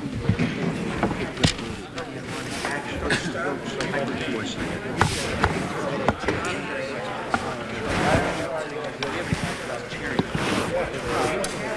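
Several men talk at once nearby in a busy room.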